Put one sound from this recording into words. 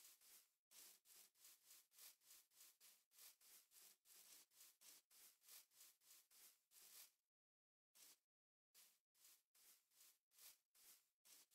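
Footsteps crunch rapidly through grass, with a short pause.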